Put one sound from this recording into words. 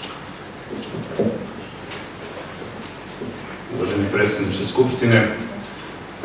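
A man speaks into a microphone at a lectern.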